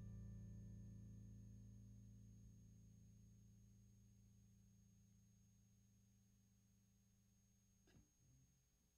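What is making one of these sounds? An acoustic guitar chord rings and slowly fades away.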